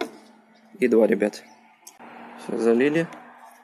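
A plastic bottle cap taps against a glass bottle rim.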